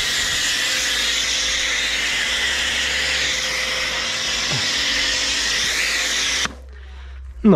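A pressure washer sprays foam with a loud, steady hiss.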